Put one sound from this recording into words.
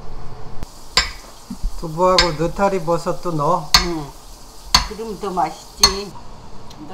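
A knife taps down onto a cutting board.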